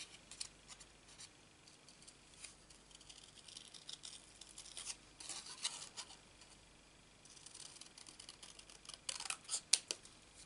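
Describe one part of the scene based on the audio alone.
Scissors snip through thin card in short, crisp cuts.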